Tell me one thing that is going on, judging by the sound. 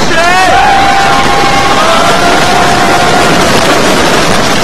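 Riders scream loudly on a roller coaster.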